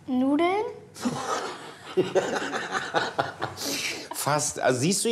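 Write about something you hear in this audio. A man laughs heartily close by.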